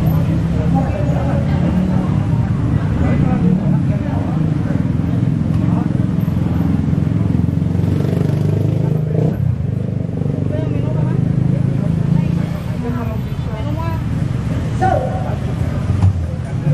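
Voices murmur steadily in the background.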